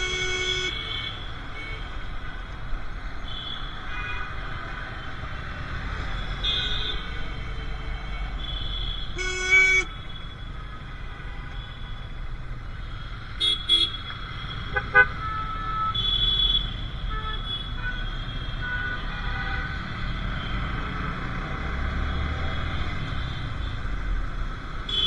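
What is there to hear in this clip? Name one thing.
Motorcycle engines idle and rumble nearby in city traffic.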